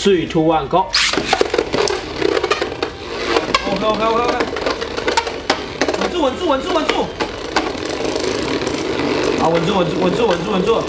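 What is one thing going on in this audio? Spinning tops clatter and knock against each other in a plastic arena.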